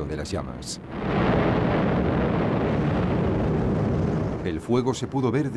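A large explosion roars and rumbles.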